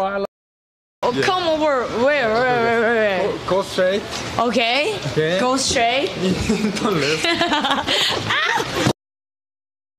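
A young woman talks and laughs close to a microphone.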